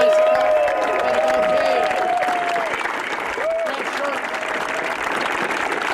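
A crowd cheers and whoops.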